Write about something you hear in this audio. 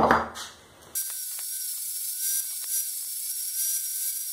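An angle grinder whines loudly as it cuts metal.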